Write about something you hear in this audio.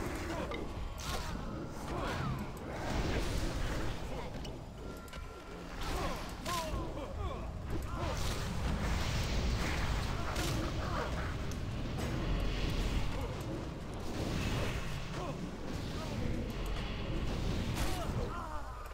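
Weapons strike and clash repeatedly.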